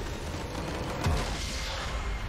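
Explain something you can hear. A large magical explosion booms.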